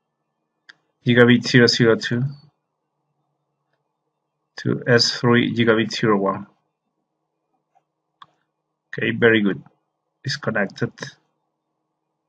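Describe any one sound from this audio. A man speaks calmly into a microphone, in short phrases.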